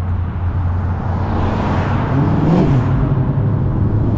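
A car engine rumbles deeply as a car drives past close by.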